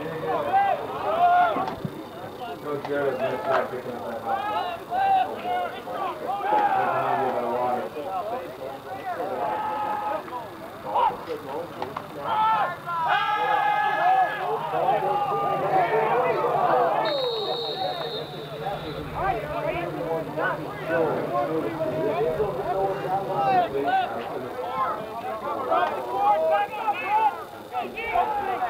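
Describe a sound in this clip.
Young men talk and shout nearby outdoors.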